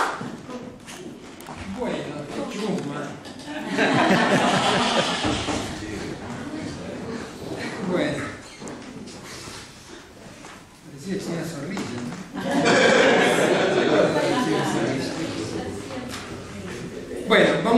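An elderly man speaks steadily into a microphone in an echoing room.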